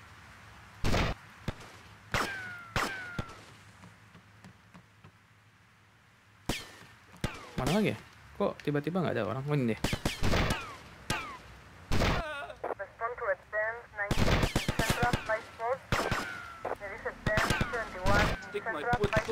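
Loud gunshots ring out, one at a time, with a sharp echo.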